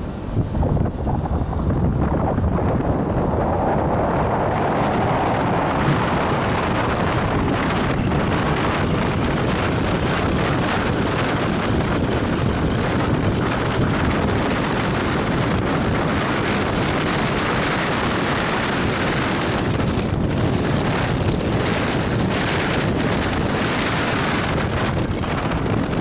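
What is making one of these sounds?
A motorcycle engine hums steadily while riding along a winding road.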